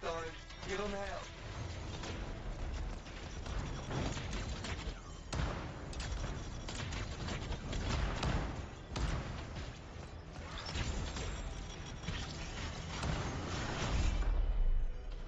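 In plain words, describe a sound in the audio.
Gunfire and explosions crackle and boom in quick bursts.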